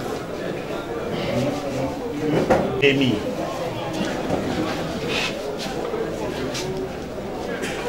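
Papers rustle and shuffle.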